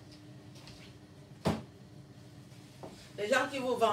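Shoes knock together in a woman's hands.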